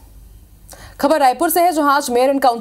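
A woman speaks clearly into a microphone.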